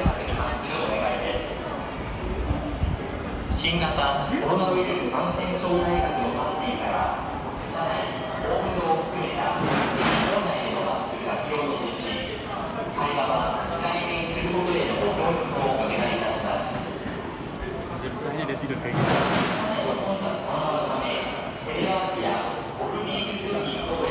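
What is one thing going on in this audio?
A crowd of men and women chatter all around in an echoing hall.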